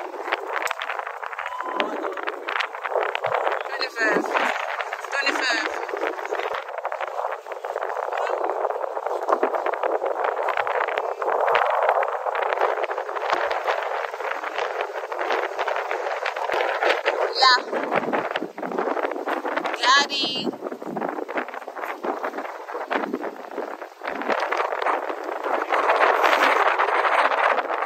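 Sea water laps against a rocky shore outdoors.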